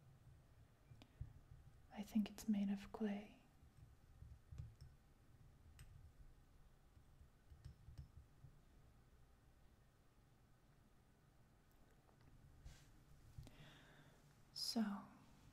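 Fingers tap and scratch lightly on a wooden lid, close up.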